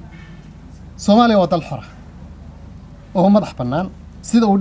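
A middle-aged man speaks calmly into a nearby microphone, in short phrases.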